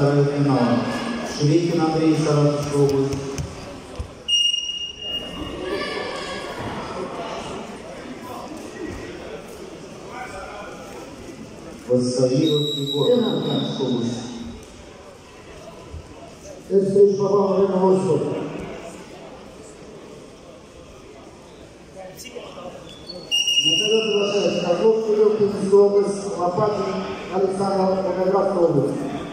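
A man shouts loudly and urgently close by, in an echoing hall.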